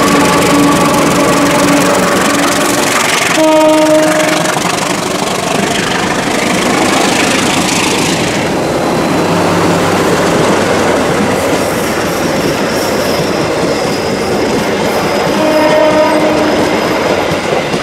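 A locomotive horn blows in long blasts.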